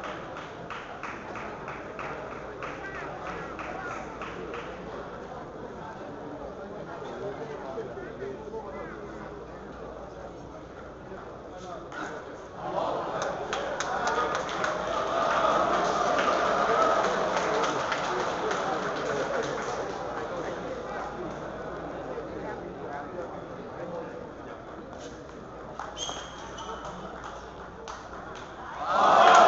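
A crowd murmurs and chatters in an echoing hall.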